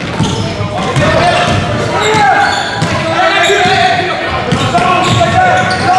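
A basketball is dribbled on a hardwood court.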